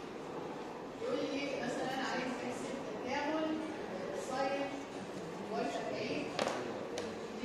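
A woman speaks in a lecturing tone.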